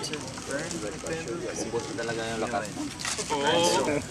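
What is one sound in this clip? Rice rustles in a plastic bag.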